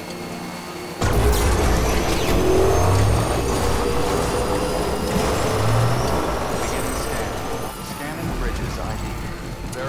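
Tyres rumble and crunch over rough, stony ground.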